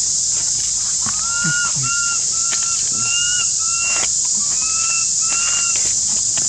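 A monkey gives short, high squeaky calls.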